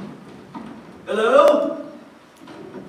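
A man calls out loudly in an echoing hall.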